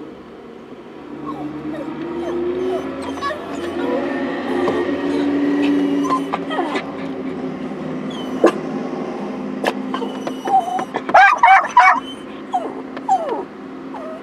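Cars drive past close by, their engines and tyres rising and falling.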